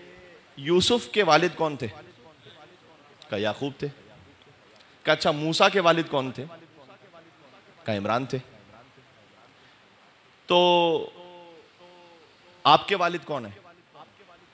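A man speaks through a microphone in short, emphatic bursts with long pauses.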